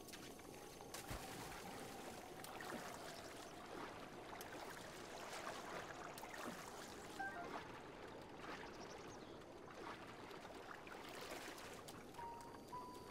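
Water splashes as a figure swims with quick strokes.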